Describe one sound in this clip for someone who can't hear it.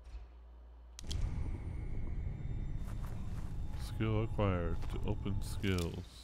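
A low, deep rumble hums steadily.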